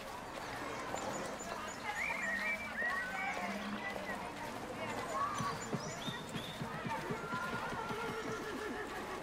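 Footsteps crunch on dry grass and dirt.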